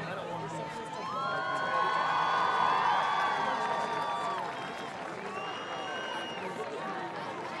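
Brass instruments play swelling, bending notes.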